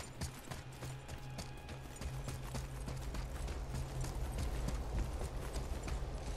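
Footsteps run over hard stone ground.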